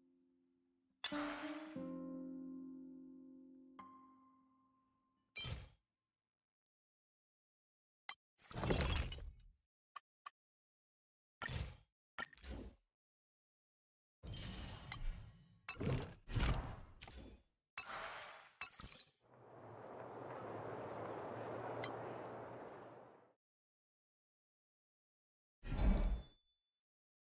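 Short electronic menu chimes and clicks sound now and then.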